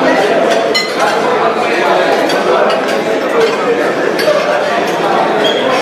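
Cutlery clinks on plates.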